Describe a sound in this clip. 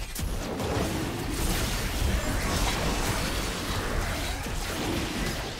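Magic blasts whoosh and crackle in a video game battle.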